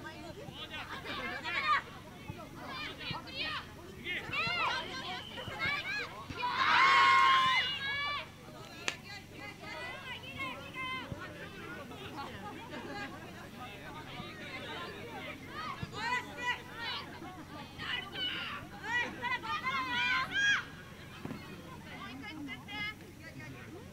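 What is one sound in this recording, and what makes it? Young players shout and call to each other outdoors, at a distance.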